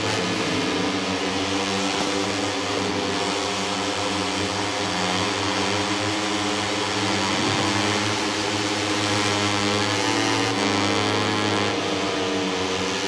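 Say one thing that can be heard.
Racing motorcycle engines roar and whine steadily, shifting pitch as they speed up and slow down.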